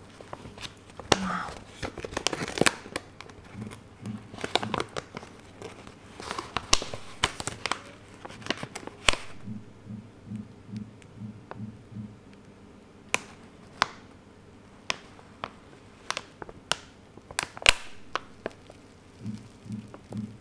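A plastic wrapper crinkles and rustles in someone's hands.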